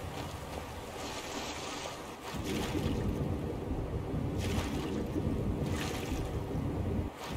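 Water splashes as someone wades in and swims.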